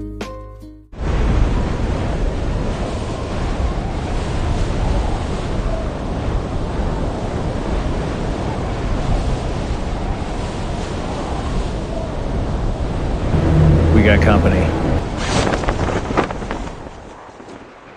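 Wind rushes loudly and steadily during a free fall.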